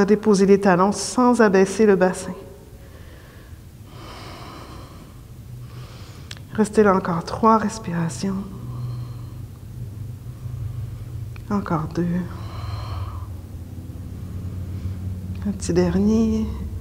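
A woman speaks calmly and slowly, close to a microphone, with long pauses.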